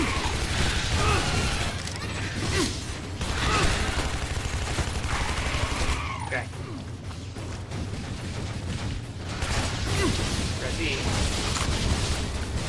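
A man talks through a headset microphone.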